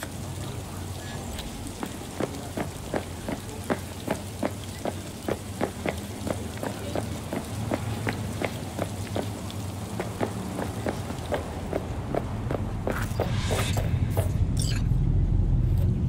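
Footsteps tap at a steady walking pace on a hard floor.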